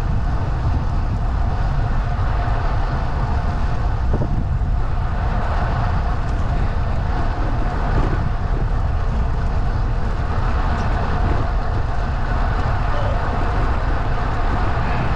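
Wind buffets the microphone steadily while moving.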